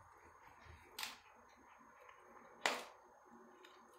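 A kitten's paws scuffle and knock on a hard floor.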